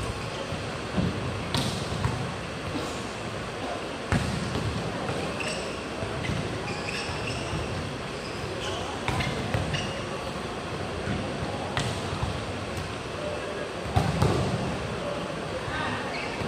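A crowd murmurs and cheers throughout a large echoing hall.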